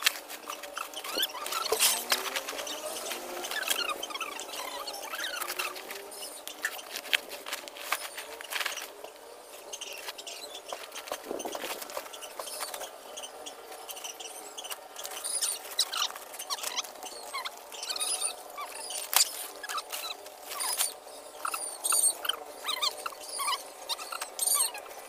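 Plastic sacks rustle and crinkle.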